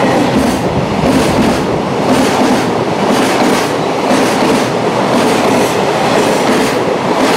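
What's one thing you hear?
A freight train rumbles past at speed, close by.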